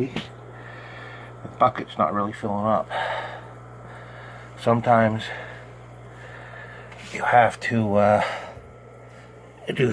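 Water trickles through a hose into a tub of water.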